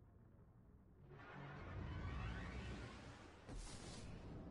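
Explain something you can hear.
A rising whoosh rushes past as a spaceship leaps to high speed.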